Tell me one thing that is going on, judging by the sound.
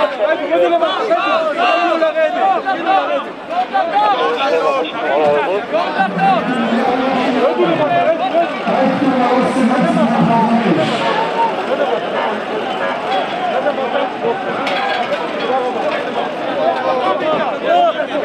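A large crowd of men sings and chants loudly outdoors.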